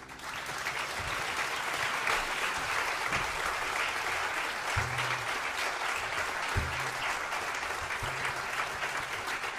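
A double bass plucks deep notes.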